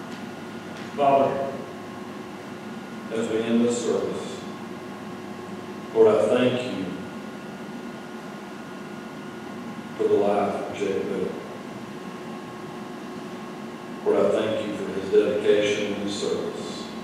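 A man speaks slowly and calmly through a microphone in a large echoing hall.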